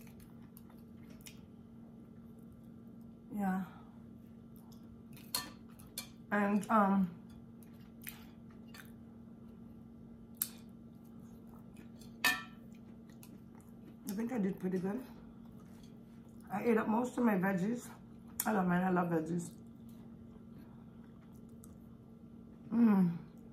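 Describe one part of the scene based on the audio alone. A fork clinks and scrapes on a plate.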